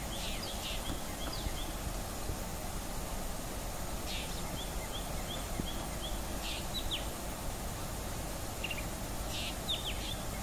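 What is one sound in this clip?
A bird chirps and whistles in short, repeated calls.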